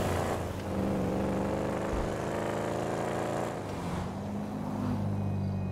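A muscle car engine roars as the car accelerates hard.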